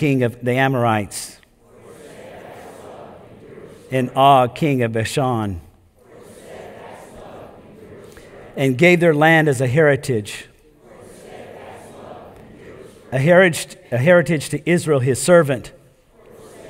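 An older man reads aloud slowly through a microphone in a room with some echo.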